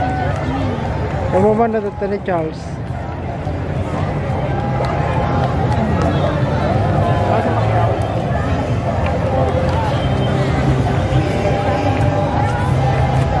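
A large outdoor crowd chatters and cheers along a street.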